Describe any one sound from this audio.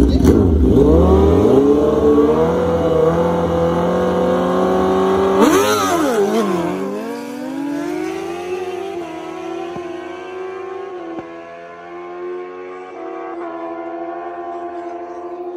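Motorcycles roar away, their engines climbing in pitch and fading into the distance.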